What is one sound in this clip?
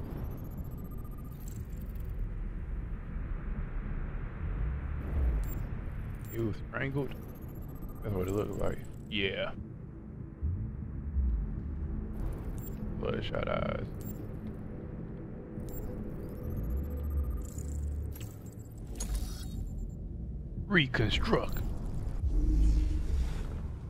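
A low electronic hum drones.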